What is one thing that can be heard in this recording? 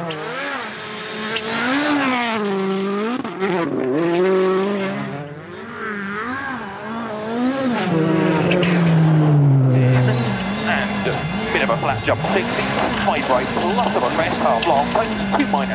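A rally car races at speed along a snowy road.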